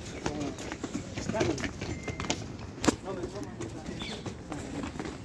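Footsteps scuff on stone paving.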